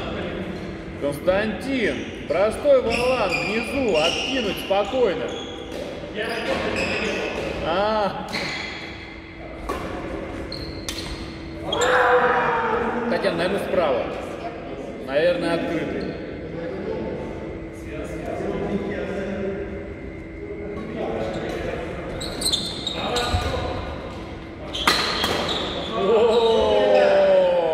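Badminton rackets strike a shuttlecock back and forth in a large echoing hall.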